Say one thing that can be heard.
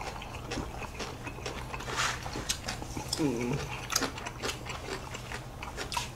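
A young man chews food close to the microphone.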